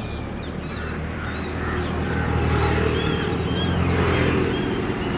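A large-billed crow caws harshly.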